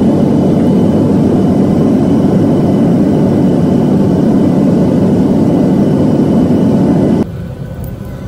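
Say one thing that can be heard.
Jet engines roar loudly and steadily.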